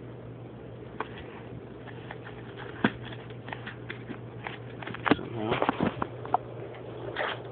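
A plastic sheath clicks and taps as a hand handles it.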